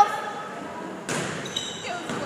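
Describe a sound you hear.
A volleyball is struck with a hand in an echoing gym.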